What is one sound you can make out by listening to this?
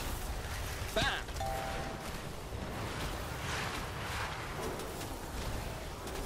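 Magic impacts hit with bright chimes.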